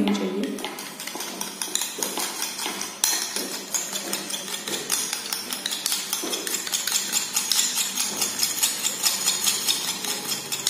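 A brush scrapes lightly on a small surface in quick, repeated strokes.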